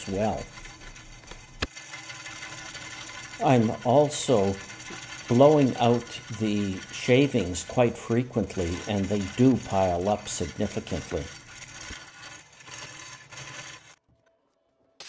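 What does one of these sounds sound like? A wood lathe hums steadily as it spins.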